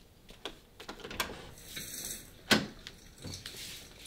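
A door latch clicks and the door swings open.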